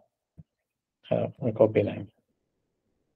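A man speaks briefly and calmly over an online call.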